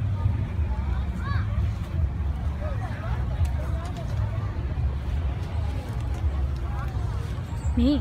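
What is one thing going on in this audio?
Adults chatter faintly in a crowd outdoors.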